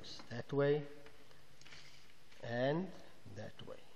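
Paper rustles as a sheet slides across a desk.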